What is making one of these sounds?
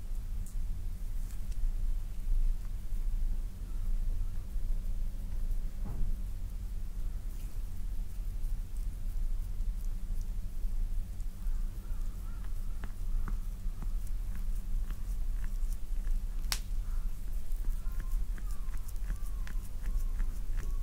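Fingers softly rub and squeeze skin close by.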